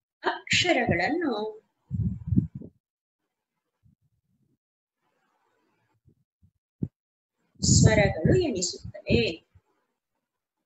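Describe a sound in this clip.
A woman speaks calmly through an online call, explaining slowly.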